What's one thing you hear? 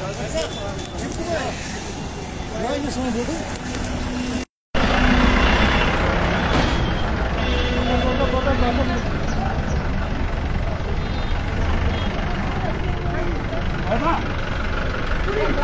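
A vehicle engine hums nearby.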